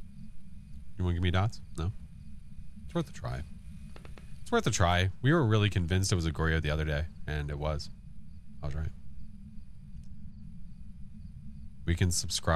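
A man talks casually into a close microphone.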